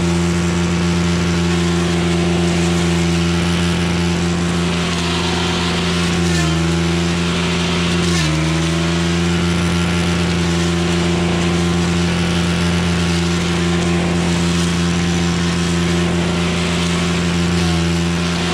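A brush cutter's spinning head whips and shreds through leafy weeds.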